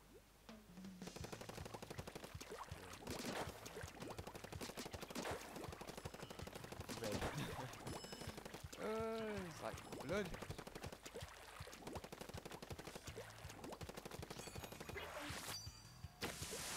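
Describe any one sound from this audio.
A game character shoots ink in rapid wet bursts.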